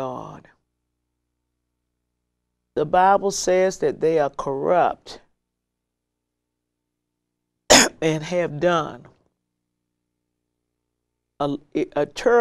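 An elderly woman speaks calmly and deliberately into a close microphone, with long pauses.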